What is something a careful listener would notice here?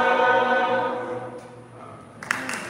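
A choir sings together in a large echoing hall.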